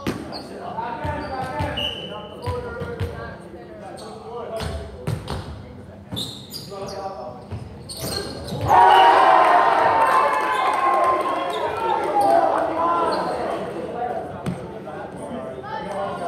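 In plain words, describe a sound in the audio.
Young players shout and call to each other in an echoing gym.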